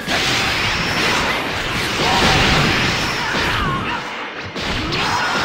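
Energy blasts roar and crackle in a fight.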